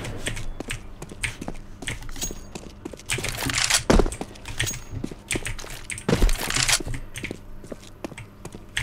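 Footsteps tap quickly on a hard stone surface.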